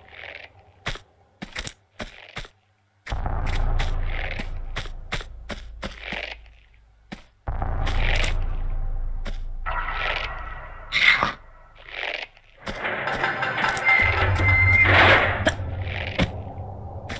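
Footsteps patter quickly on a wooden floor.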